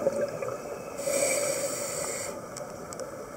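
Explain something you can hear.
A diver's regulator hisses with an inhaled breath.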